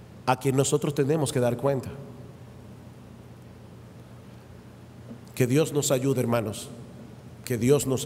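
A middle-aged man speaks emphatically into a microphone, with pauses between phrases.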